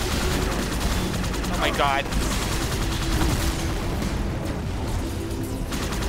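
Energy weapons fire in rapid bursts.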